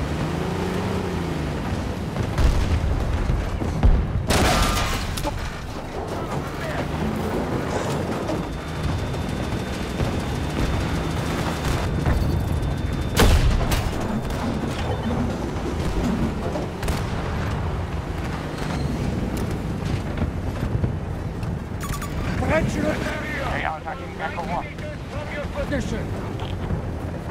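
A tank engine rumbles and its tracks clank steadily.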